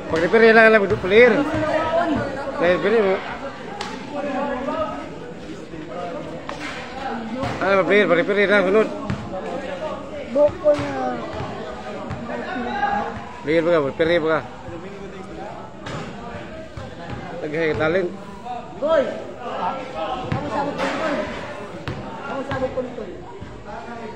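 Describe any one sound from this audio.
Young men shout and call out close by during a game outdoors.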